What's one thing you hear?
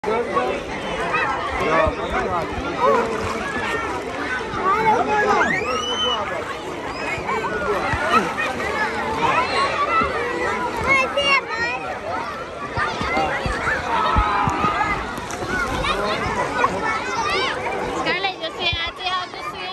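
Water splashes around a child in a pool.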